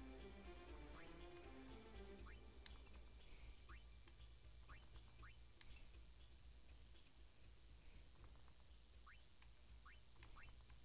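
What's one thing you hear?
Short, high electronic menu blips chirp several times.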